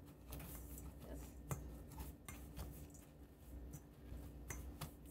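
A hand stirs and scrapes food in a metal bowl, with soft clinks.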